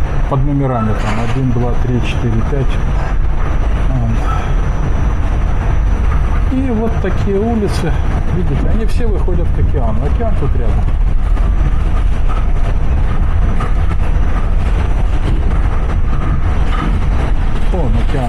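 A train rumbles and rattles steadily along elevated tracks.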